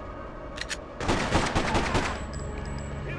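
Pistol shots ring out and echo through a large concrete hall.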